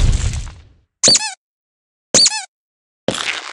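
Coins chime brightly when collected.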